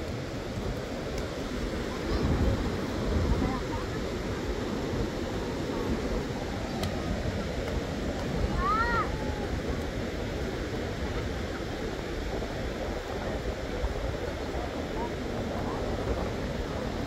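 Small waves wash softly onto a shore.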